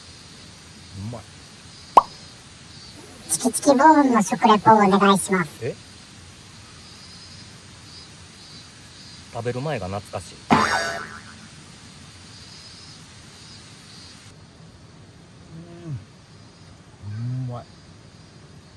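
A man talks with animation close by, now and then letting out a short exclamation.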